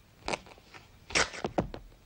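Soft wet clay squelches as fingers squeeze it.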